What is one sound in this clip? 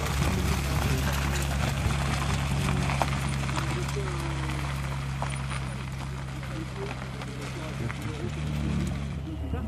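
A sports car engine rumbles loudly as the car drives slowly away.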